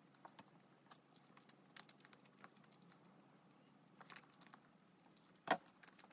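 A young woman chews food softly close to the microphone.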